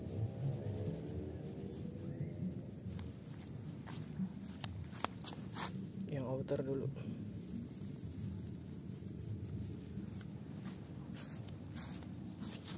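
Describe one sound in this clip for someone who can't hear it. Tent fabric rustles and flaps.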